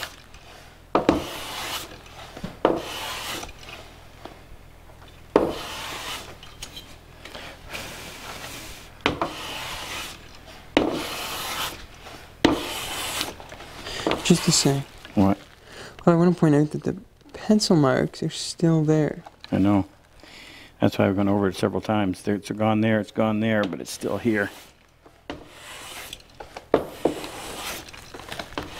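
A hand plane shaves wood in long, rasping strokes.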